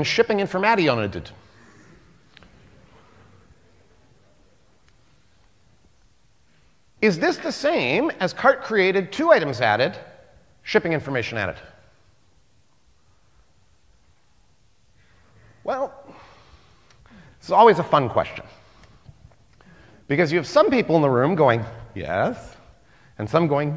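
A man speaks with animation through a microphone in a large hall, with pauses.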